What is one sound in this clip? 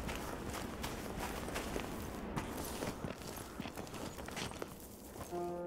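Footsteps crunch on dry grass and straw.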